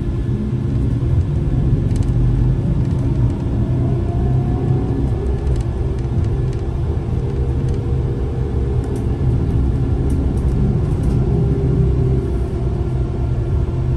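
A car engine hums steadily with road rumble from inside a moving car.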